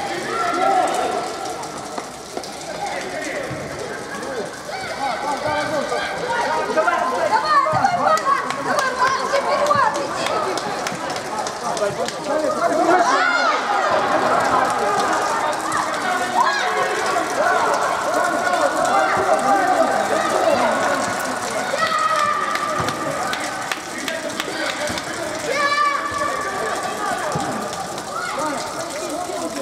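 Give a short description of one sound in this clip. Young players shout and call to each other across a large echoing hall.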